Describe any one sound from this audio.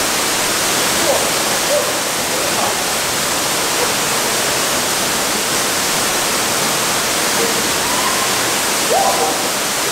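Young men call out over the roar of the water.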